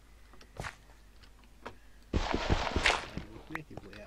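A pickaxe chips and breaks stone blocks with crunching knocks.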